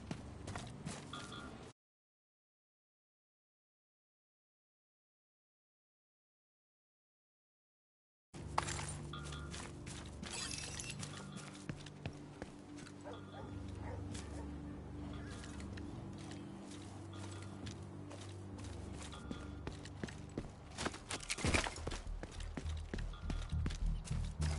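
Footsteps run quickly over ground.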